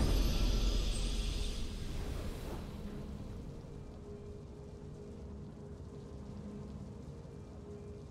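A triumphant game fanfare rings out and slowly fades.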